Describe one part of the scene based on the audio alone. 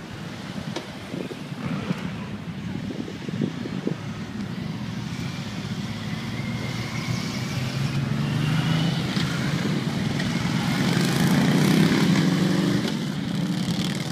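Motorcycle engines rumble and idle nearby.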